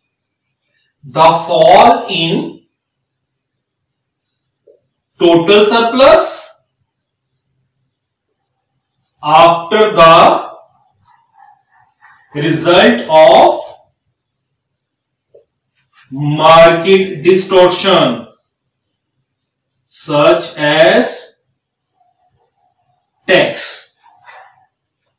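A man speaks calmly in short phrases with pauses, close to a microphone.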